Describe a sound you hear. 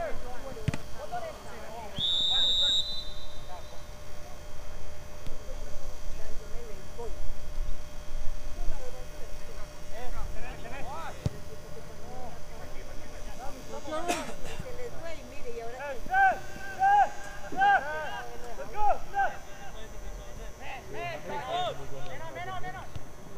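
A small crowd of men and women chatter and call out nearby, outdoors in the open.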